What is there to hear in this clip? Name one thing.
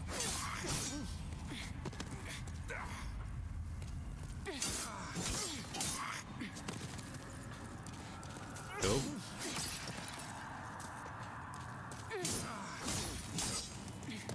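Swords clash and slash in quick strikes.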